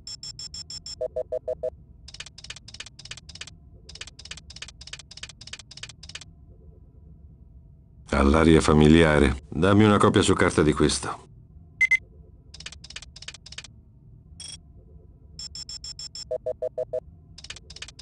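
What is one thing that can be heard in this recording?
An electronic device gives short beeps.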